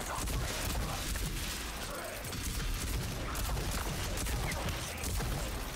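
An automatic gun fires rapid, thudding shots.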